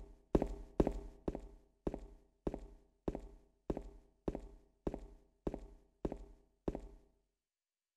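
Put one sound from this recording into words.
Footsteps thud slowly on stairs.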